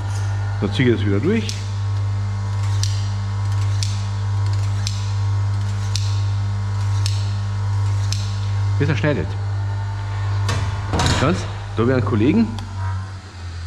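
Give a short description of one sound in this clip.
A knife blade scrapes and rings against a sharpening steel.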